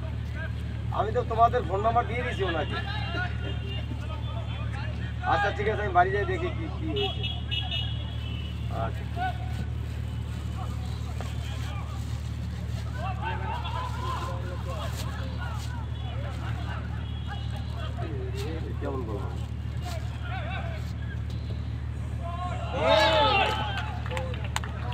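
Men shout to each other across an open pitch at a distance.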